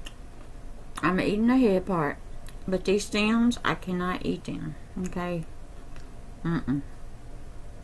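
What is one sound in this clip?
A woman speaks close to the microphone.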